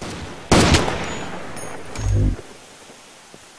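A rifle bolt clicks and clacks as it is reloaded.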